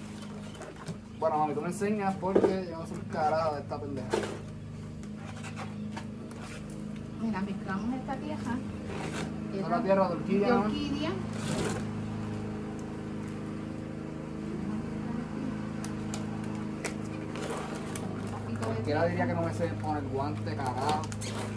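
Paper crinkles in hands.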